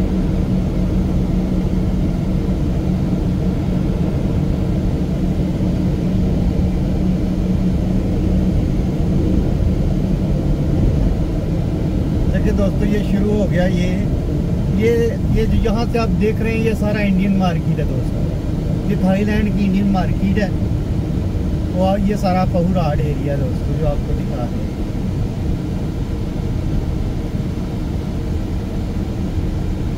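A car's engine and tyres rumble, heard from inside while driving along a road.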